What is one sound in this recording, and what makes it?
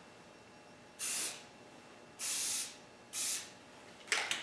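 A spray can hisses in short bursts.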